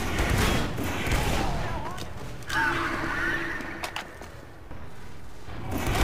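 Rockets explode with loud booms.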